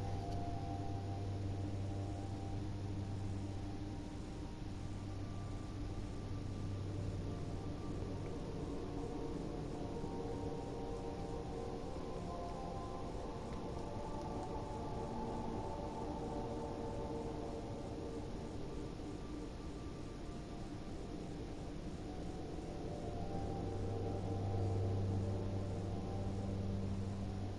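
Spaceship engines roar steadily with a deep, low hum.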